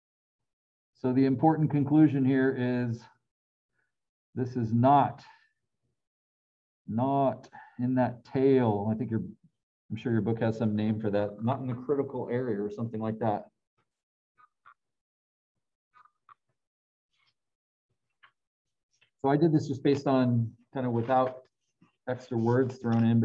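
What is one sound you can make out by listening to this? A middle-aged man speaks calmly through a microphone, explaining in an online call.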